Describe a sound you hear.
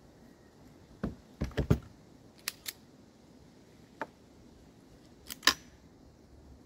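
A shotgun's action clicks and clacks as it is handled.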